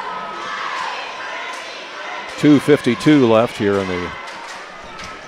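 A crowd murmurs in a large echoing gym.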